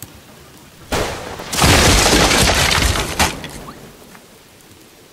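A fire bursts into flame with a loud whooshing roar.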